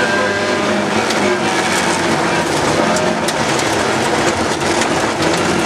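Gravel and stones rattle against the underside of the car.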